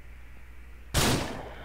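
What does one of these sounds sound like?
A pistol fires a single loud shot outdoors.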